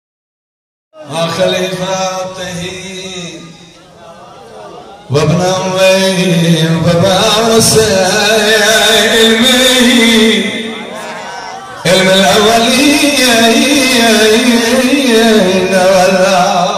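A man chants melodically into a microphone over loudspeakers in an echoing hall.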